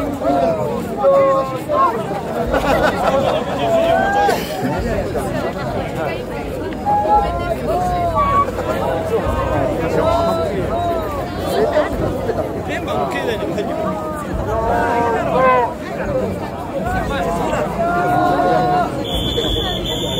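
A crowd murmurs and cheers nearby.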